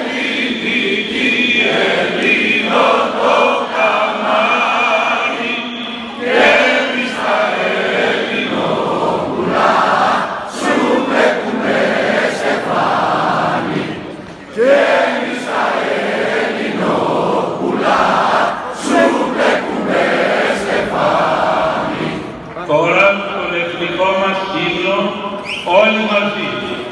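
A large crowd murmurs and calls out in the open air.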